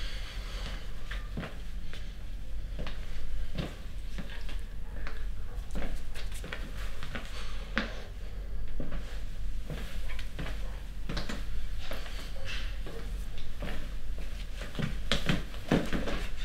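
Footsteps pace across a floor.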